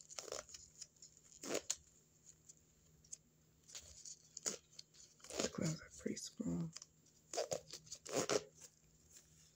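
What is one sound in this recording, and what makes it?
A rubber glove crinkles and squeaks close up.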